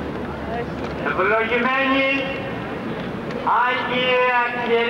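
A man's voice calls out loudly over the crowd.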